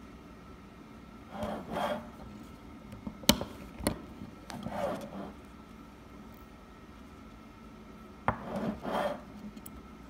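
A hand press clicks and thuds as it is pushed down.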